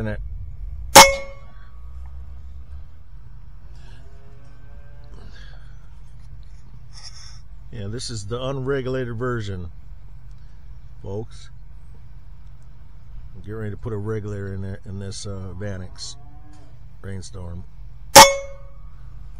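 A rifle fires loud, sharp shots close by, each one ringing out briefly.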